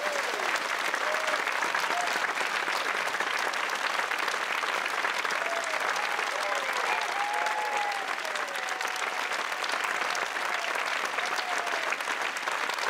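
Audience members cheer and whoop now and then.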